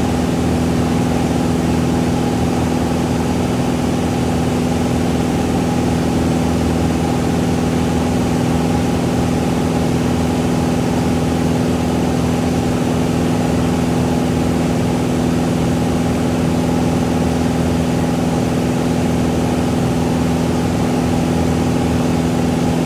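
A small propeller engine drones loudly and steadily from inside a cockpit.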